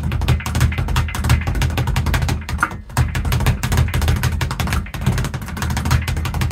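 A speed bag rattles rapidly against its wooden board in a fast, steady rhythm.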